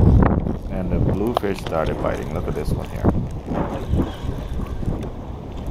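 A fishing reel clicks as its handle is turned.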